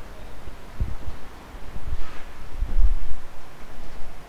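A man walks past with heavy footsteps thudding close by.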